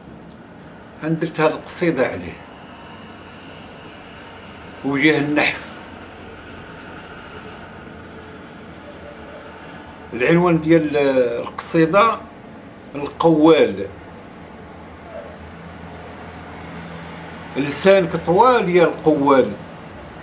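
An elderly man speaks calmly and closely, in short bursts with pauses.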